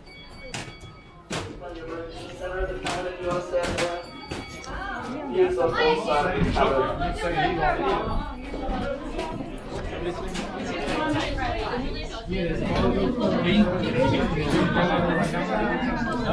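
Several people chatter nearby in a crowded space.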